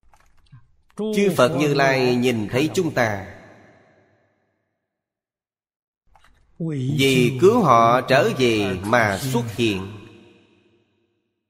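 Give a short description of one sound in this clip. An elderly man speaks calmly and slowly into a close microphone, in two short phrases.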